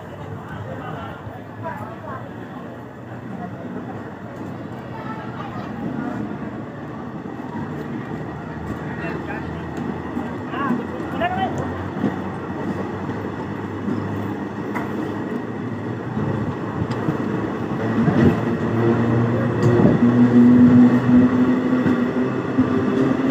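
Voices of people on a platform chatter in the distance.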